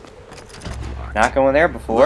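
A locked wooden door rattles as its handles are tried.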